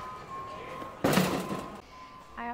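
A cardboard box thumps down into a shopping cart.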